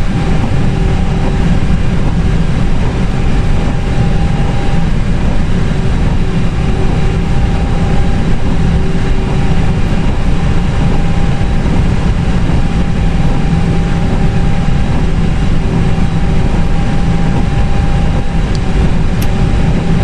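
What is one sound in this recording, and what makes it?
Jet engines hum steadily at idle.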